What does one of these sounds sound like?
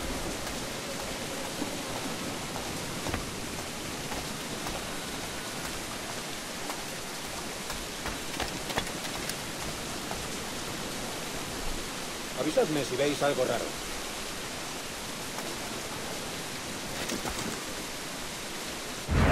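Footsteps patter on wet stone.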